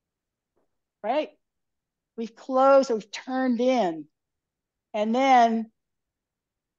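An older woman speaks with animation into a close microphone, in short phrases.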